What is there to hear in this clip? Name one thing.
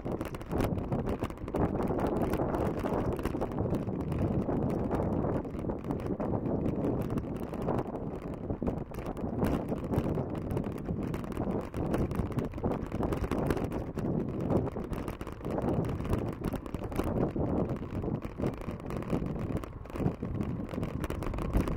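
Wind rumbles loudly past the microphone outdoors.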